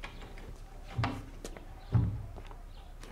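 Dull thumps sound as a woman handles things.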